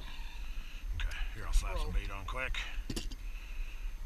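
A young man speaks nearby, casually.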